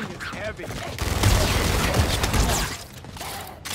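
A heavy gun fires in loud, roaring bursts.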